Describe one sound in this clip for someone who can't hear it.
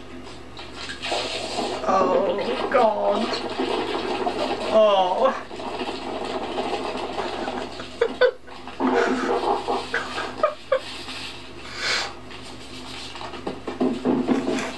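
A young man sobs and whimpers emotionally behind his hands.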